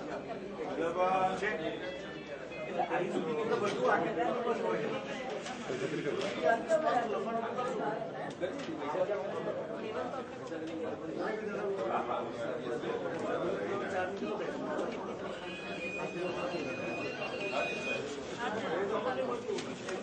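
A crowd of men and women chatters indoors.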